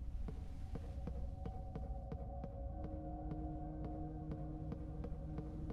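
Footsteps thud steadily down wooden stairs.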